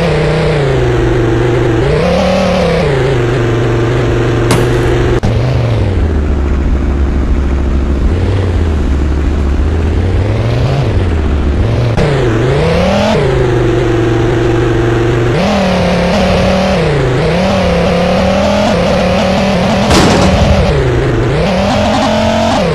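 A car engine revs up and down, rising and falling in pitch.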